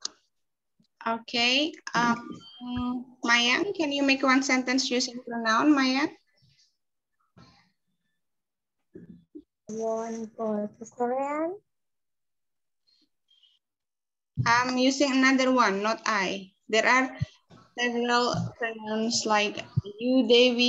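A young girl speaks through an online call.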